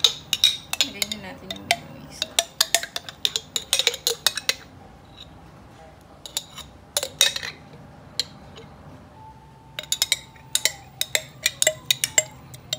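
A metal spoon scrapes and clicks against a glass jar and a bowl.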